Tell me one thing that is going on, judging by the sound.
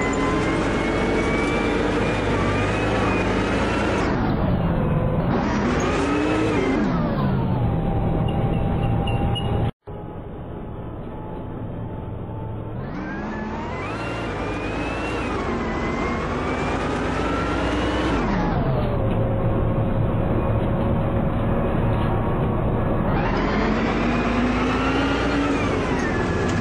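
A city bus's diesel engine accelerates, its pitch rising and dropping back with each gear change.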